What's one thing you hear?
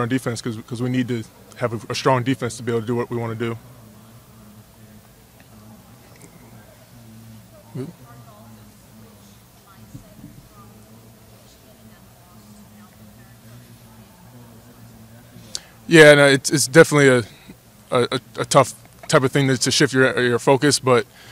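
A young man speaks calmly into a microphone, with pauses.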